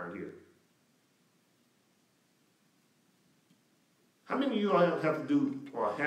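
A middle-aged man speaks calmly into a microphone, pausing briefly.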